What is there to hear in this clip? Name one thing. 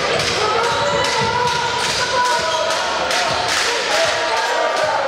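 A large crowd cheers and chatters in an echoing hall.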